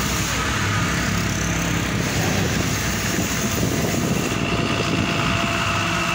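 A car approaches on a wet road.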